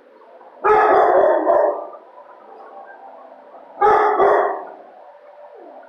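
A dog barks loudly nearby, echoing off hard walls.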